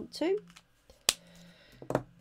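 A marker cap clicks shut.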